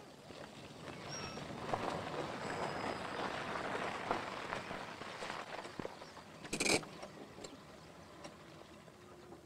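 A car engine runs and approaches slowly.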